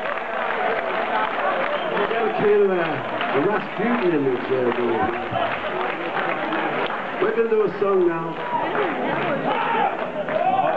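An acoustic guitar is strummed.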